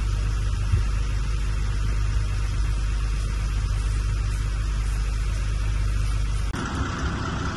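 Water sprays hard from a fire hose.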